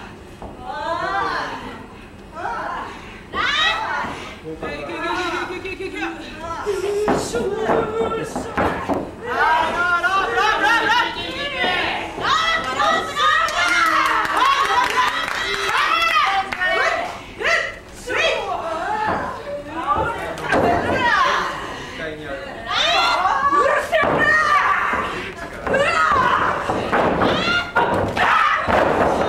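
Young women shout and cry out loudly nearby.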